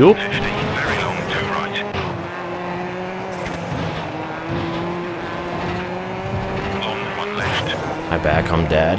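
A car engine drones steadily and shifts gears.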